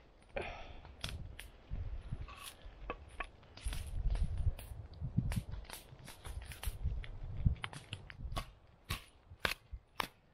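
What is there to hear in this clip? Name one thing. A knife knocks sharply into a log, splitting wood with repeated cracks.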